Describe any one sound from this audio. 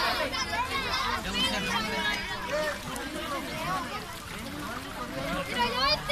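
Water splashes as people move in a pool.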